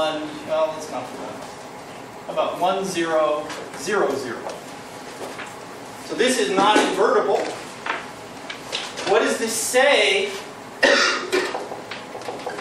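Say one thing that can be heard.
A middle-aged man lectures calmly in a room with a slight echo.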